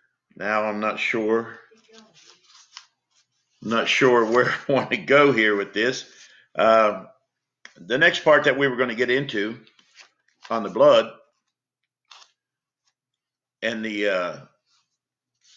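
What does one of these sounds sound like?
An elderly man speaks calmly into a nearby microphone, in short phrases with pauses.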